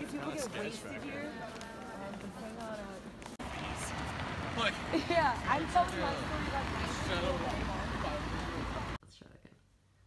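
Several young adults talk nearby outdoors.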